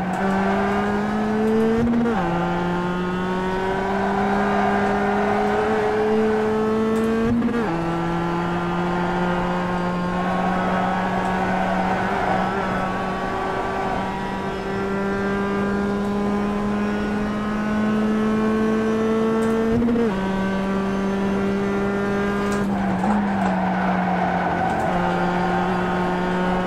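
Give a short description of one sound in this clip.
A racing car engine drones through loudspeakers, slowly climbing in pitch and dropping sharply at each gear change.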